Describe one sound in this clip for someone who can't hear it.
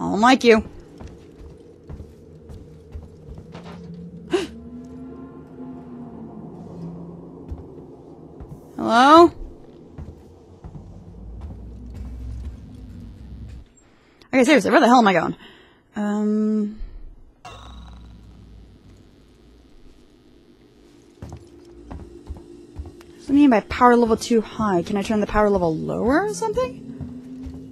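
A young woman talks calmly close to a microphone, in short bursts.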